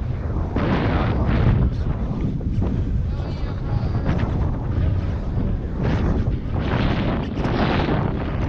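Waves wash against a pier below.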